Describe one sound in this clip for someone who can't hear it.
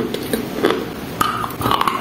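A young woman bites into a block of ice with a sharp crack.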